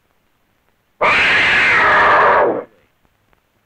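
A big cat snarls loudly.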